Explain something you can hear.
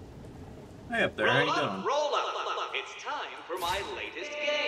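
A man speaks in a sly, theatrical voice over a loudspeaker.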